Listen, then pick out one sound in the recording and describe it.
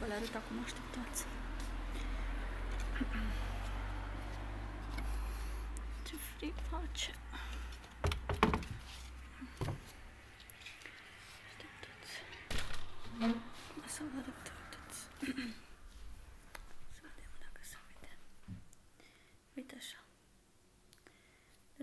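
A young woman talks quietly and close by.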